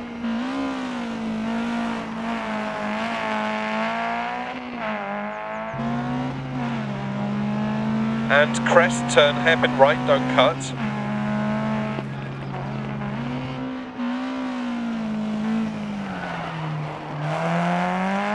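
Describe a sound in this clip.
Tyres crunch and skid on gravel.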